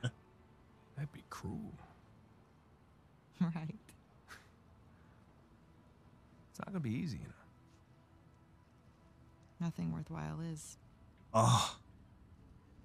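A young woman answers softly, close by.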